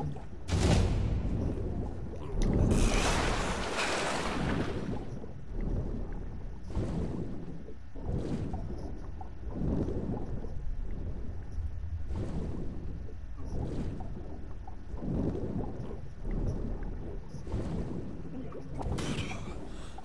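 Water swishes in steady rhythmic strokes as a swimmer moves underwater.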